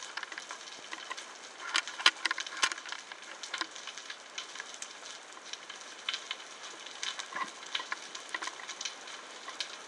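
Small clicks and crackles sound steadily underwater around a rocky reef.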